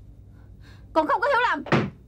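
A young woman speaks sharply, close by.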